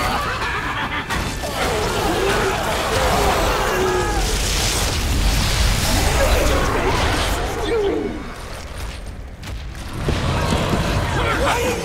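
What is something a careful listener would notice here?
A deep rumble roars throughout.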